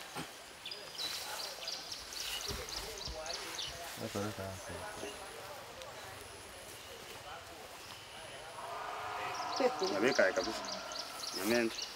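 Hands scrape and pat loose soil.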